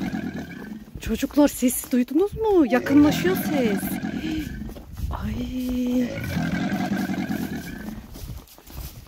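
Children talk and call out excitedly close by.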